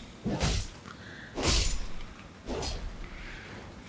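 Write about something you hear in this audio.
Sword swings whoosh and strike.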